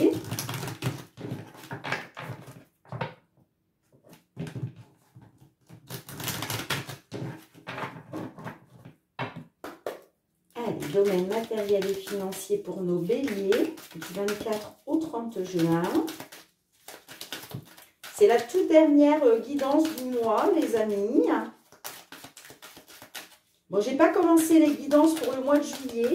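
Playing cards riffle and slap together as they are shuffled by hand.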